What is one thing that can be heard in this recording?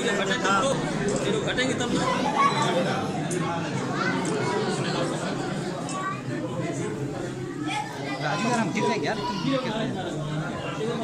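Several men and women talk at once nearby.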